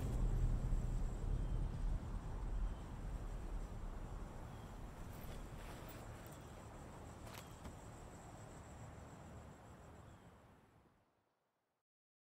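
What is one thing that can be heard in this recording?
Wind blows steadily outdoors and slowly fades away.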